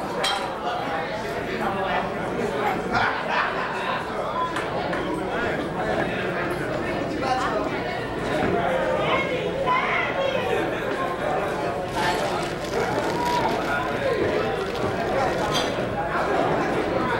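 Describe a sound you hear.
A crowd of men and women chatters in a large room.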